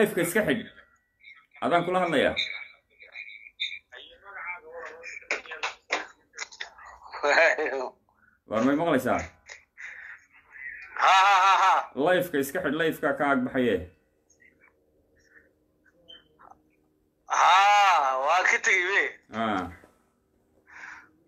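A man speaks calmly and close to a phone microphone, with pauses.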